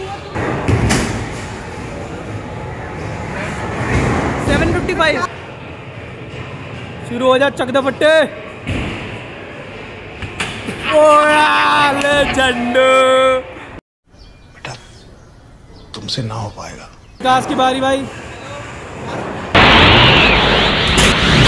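A punching bag is struck with a hard thud.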